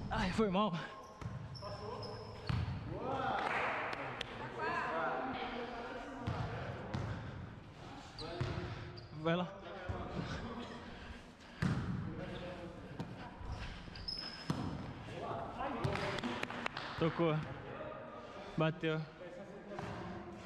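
Young men and women shout and call out across a large echoing hall.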